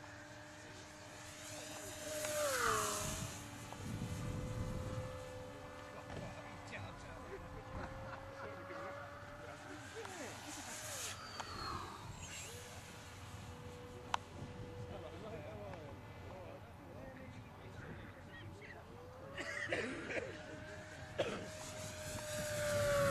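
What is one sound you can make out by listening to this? A model plane's engine whines high overhead, dropping in pitch as the plane passes by.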